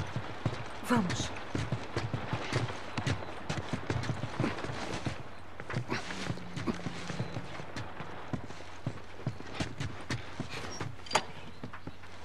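Footsteps thud on creaking wooden floorboards.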